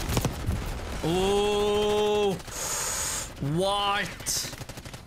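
A man shouts and sings out loudly into a microphone.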